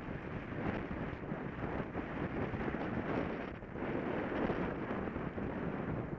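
Bicycle tyres roll and rumble over a rough paved path.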